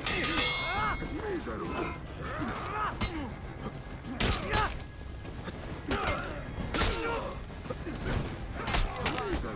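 Steel blades clash and ring in quick bursts.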